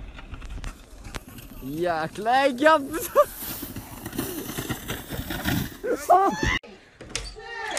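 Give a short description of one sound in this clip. A sled slides over snow.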